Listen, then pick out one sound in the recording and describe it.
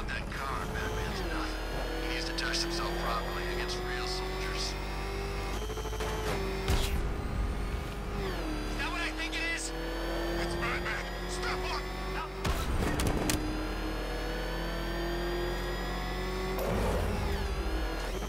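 A powerful car engine roars at speed.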